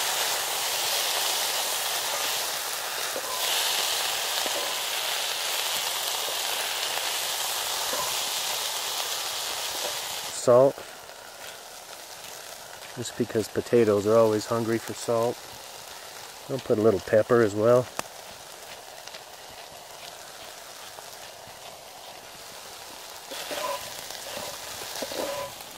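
A spatula scrapes against a metal pan.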